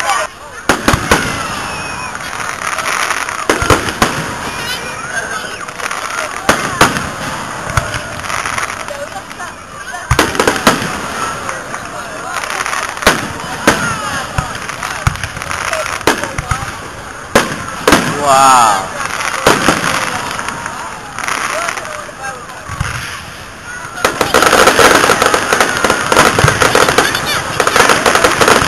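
Fireworks burst with sharp bangs outdoors.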